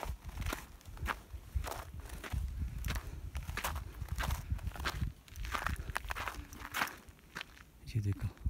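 Footsteps crunch on a rocky trail at a steady walking pace.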